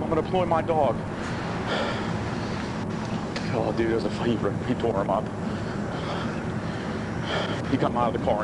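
A man talks calmly outdoors nearby.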